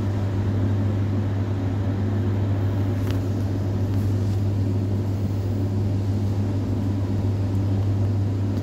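Wind rushes steadily past a falling parachutist.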